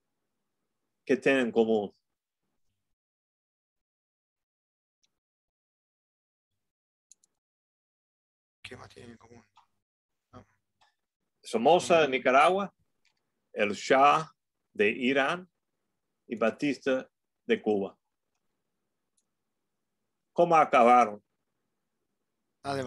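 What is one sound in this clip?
An elderly man speaks calmly through an online call, in short phrases with pauses.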